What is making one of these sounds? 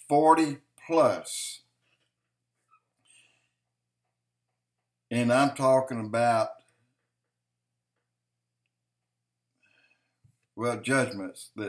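An older man speaks calmly into a microphone close by, in short bursts with long pauses.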